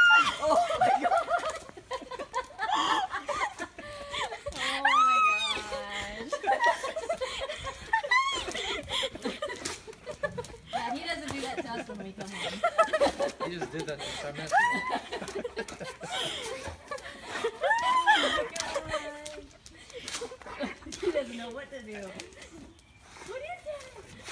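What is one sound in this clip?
A young woman laughs and squeals with excitement close by.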